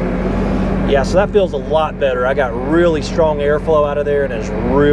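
A middle-aged man talks loudly with animation over the engine.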